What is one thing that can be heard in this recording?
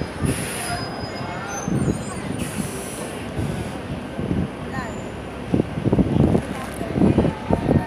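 A bus engine rumbles as a bus drives past nearby.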